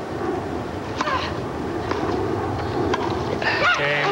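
A tennis ball is struck by rackets.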